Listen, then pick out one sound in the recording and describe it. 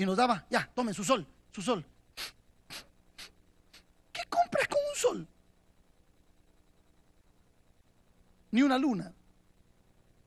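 A middle-aged man preaches with animation into a microphone, pausing between bursts.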